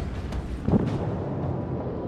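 Heavy naval guns fire with a deep, booming blast.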